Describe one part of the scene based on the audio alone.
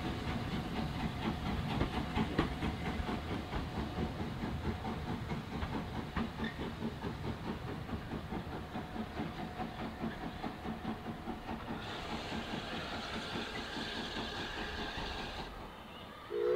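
A steam tank locomotive chuffs as it pulls away and fades into the distance.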